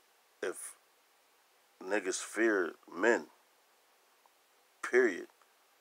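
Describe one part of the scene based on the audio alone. A man speaks calmly and slowly, close to the microphone, with pauses.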